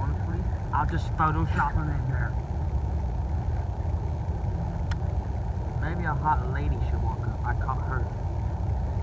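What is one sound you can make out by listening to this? A teenage boy talks nearby, outdoors.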